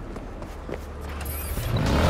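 A motorcycle engine rumbles close by.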